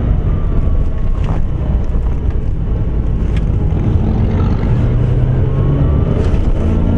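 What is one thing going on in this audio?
Tyres roll over the road with a low rushing noise.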